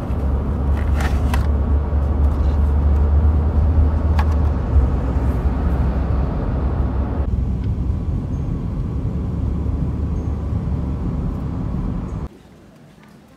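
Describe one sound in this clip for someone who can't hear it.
A car engine hums with a low, steady rumble from inside the car.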